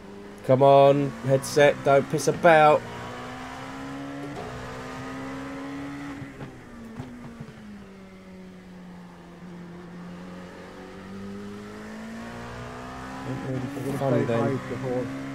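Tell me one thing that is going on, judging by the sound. A racing car engine drones steadily, its pitch rising and falling with the gears.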